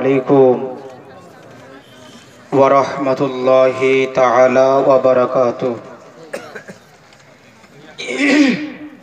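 A man chants in a melodic voice through a microphone and loudspeakers, in bursts with pauses.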